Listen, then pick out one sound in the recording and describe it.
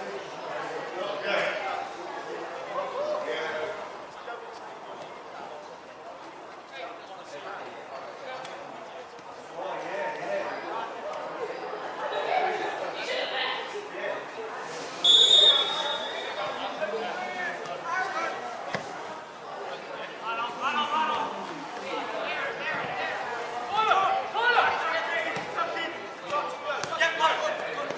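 Children shout and call out across an open field outdoors.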